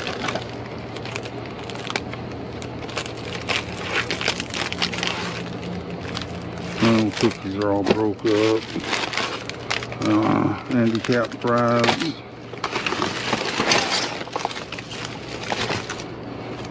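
Cardboard scrapes and thumps as it is shifted.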